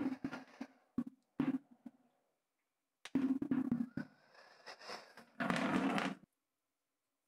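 Small metal pieces clatter as they drop into a bucket.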